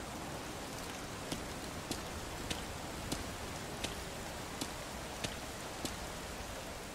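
Footsteps tap steadily on a hard pavement.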